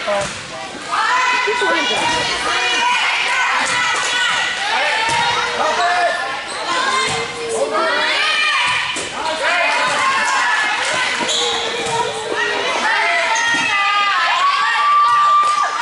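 A volleyball is struck with loud slaps.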